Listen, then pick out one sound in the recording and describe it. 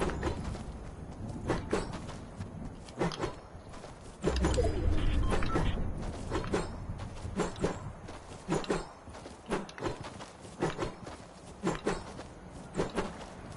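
Footsteps thump quickly and steadily on grass.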